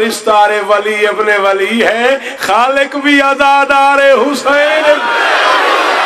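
A man chants loudly and fervently through a microphone, heard over a loudspeaker.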